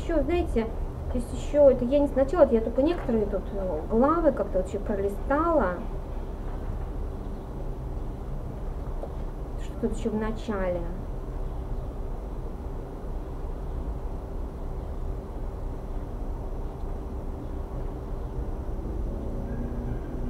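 Book pages rustle as a woman turns them.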